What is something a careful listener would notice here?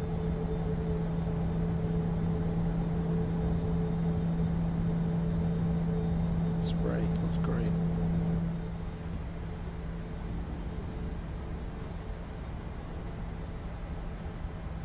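Jet engines hum steadily while an airliner taxis.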